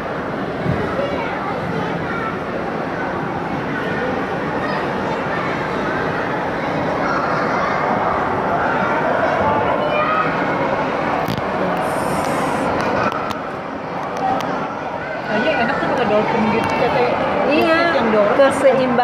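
A crowd of people chatters and calls out, echoing in a large hall.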